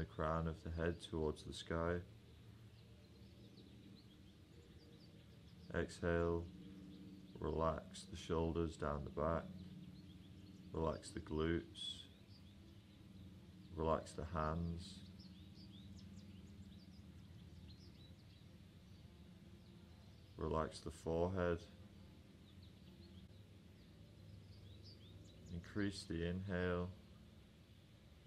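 A man speaks calmly and slowly into a close microphone, with long pauses.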